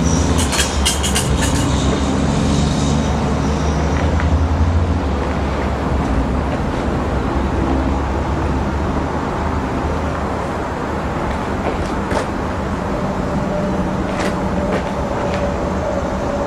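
A train rumbles along the tracks in the distance.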